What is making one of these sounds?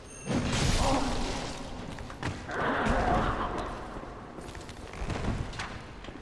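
Wood and metal crash and clatter as a cage breaks apart.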